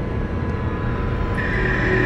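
Water runs from a shower and splashes.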